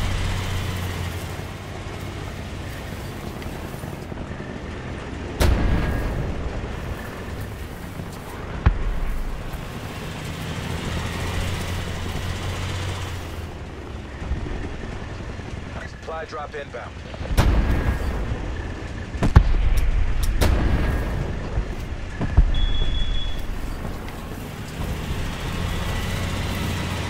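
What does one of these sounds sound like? A tank engine rumbles as the tank drives.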